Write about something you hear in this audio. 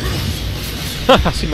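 A winged creature lets out a high, wavering shriek.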